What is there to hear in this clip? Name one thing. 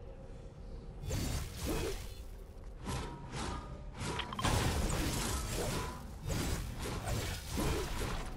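An electric crackle sizzles and zaps in bursts.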